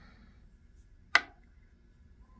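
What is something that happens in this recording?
A metal cartridge case taps down onto a wooden table.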